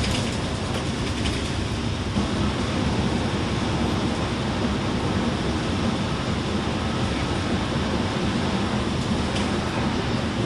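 A bus engine rumbles steadily from inside the cabin.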